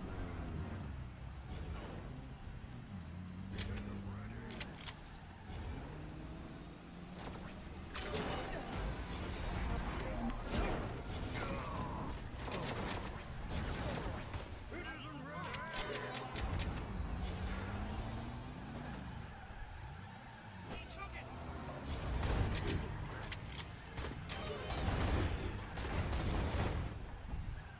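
Gunfire and laser blasts crackle in quick bursts.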